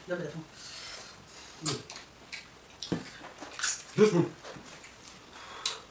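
A man chews food with wet smacking sounds close to the microphone.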